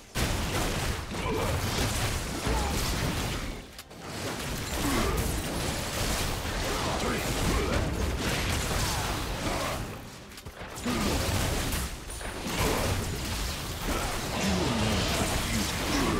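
Magic spells whoosh and crackle in a fast video game battle.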